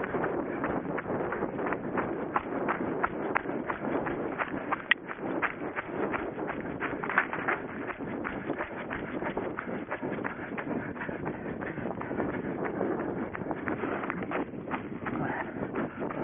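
Footsteps thud and crunch quickly on dry ground.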